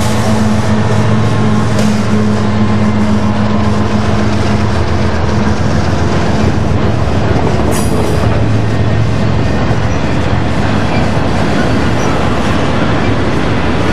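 Freight car wheels roll and clatter over the rails.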